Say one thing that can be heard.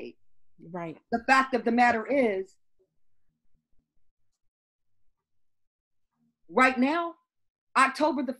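A woman speaks with animation over an online call, with pauses.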